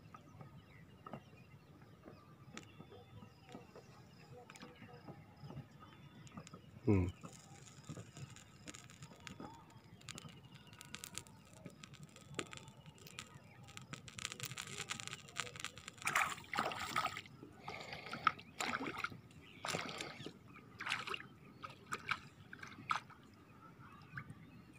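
Small offerings drop into calm water with soft plops.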